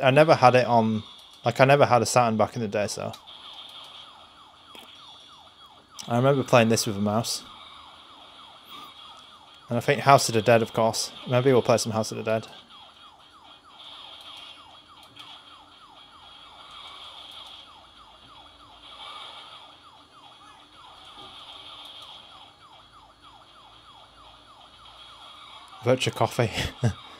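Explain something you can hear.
A handheld game console plays faint game sounds and music through its small speaker.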